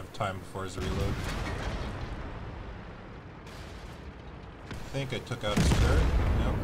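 A tank cannon fires with a loud, booming blast.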